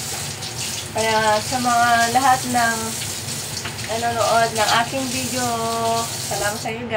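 A woman talks close by in a lively voice.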